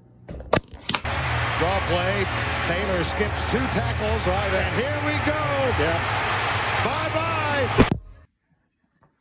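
A television plays a loud sports broadcast with a roaring crowd.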